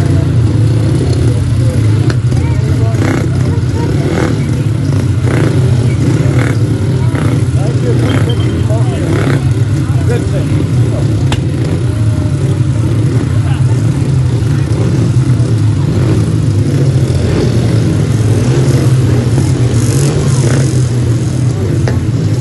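Several motorcycle engines idle and rev loudly nearby, outdoors.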